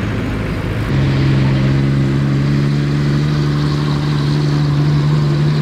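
A heavy truck's engine rumbles steadily as it rolls past close by.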